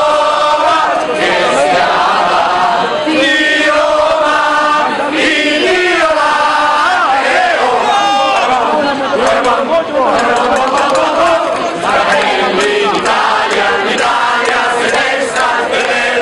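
A crowd of men and women chants loudly together, close by, outdoors.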